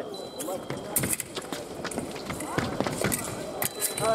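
Fencing blades clash and scrape together.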